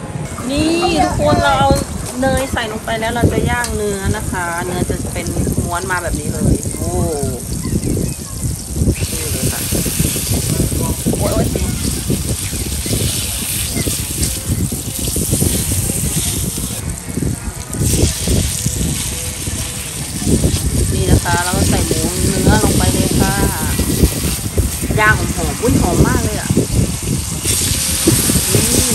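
Broth bubbles and sizzles in a hot pot.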